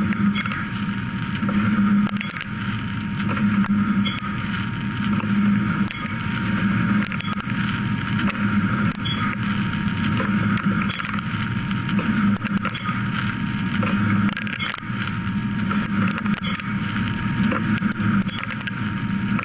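A milling machine whirs steadily as a cutter spins through metal.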